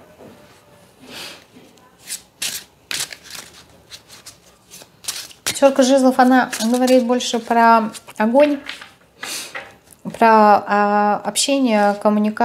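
Cards rustle and flick as a woman shuffles them.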